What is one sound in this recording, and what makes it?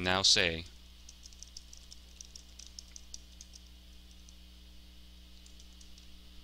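Keys on a keyboard click quickly and softly.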